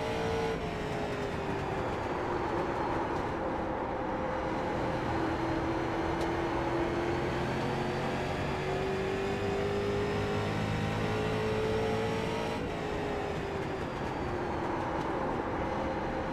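A race car engine roars steadily at high speed, its pitch rising and falling through the corners.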